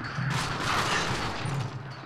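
A weapon clicks and clatters as it is reloaded.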